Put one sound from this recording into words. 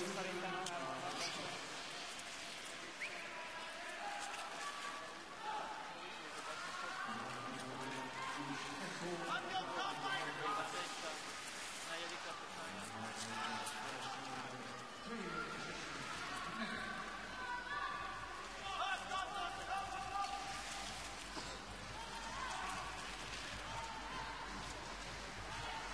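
Skate blades scrape and hiss across ice.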